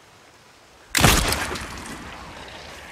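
A gunshot rings out close by.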